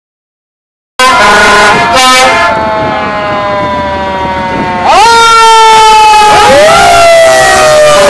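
A fire engine siren wails loudly close by, rising and falling in pitch.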